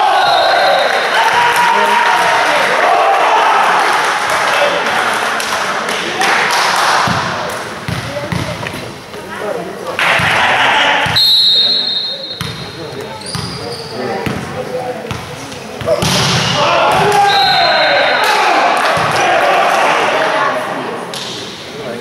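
A crowd cheers and shouts loudly in a large echoing hall.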